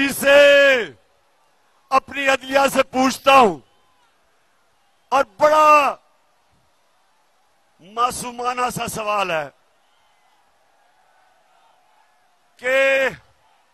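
A man makes a speech through a microphone and loudspeakers, shouting with passion in short bursts.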